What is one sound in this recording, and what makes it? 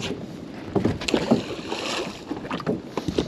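A heavy object splashes into water.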